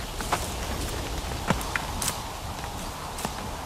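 Footsteps crunch on a dry dirt path.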